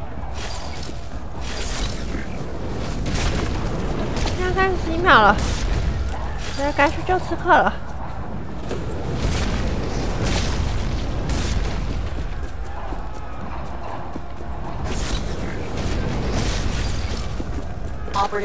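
Footsteps crunch through grass and dirt at a run.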